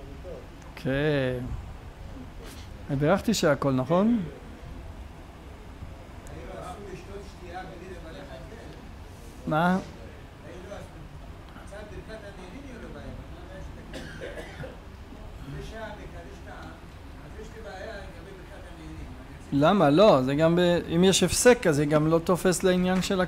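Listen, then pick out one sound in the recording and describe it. A man speaks into a microphone in a calm, lecturing voice.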